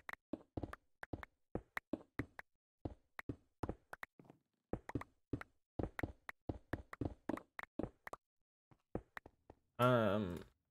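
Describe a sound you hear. Stone blocks crack and crumble in quick, repeated knocks as a pickaxe digs.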